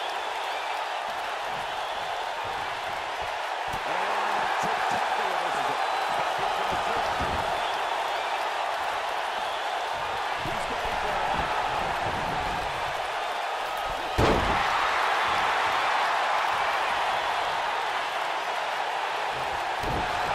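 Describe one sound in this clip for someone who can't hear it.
A large crowd cheers and roars throughout in an echoing arena.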